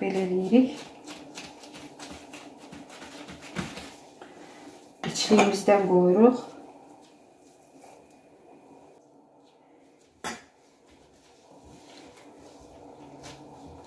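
Soft dough is patted and pressed by gloved hands.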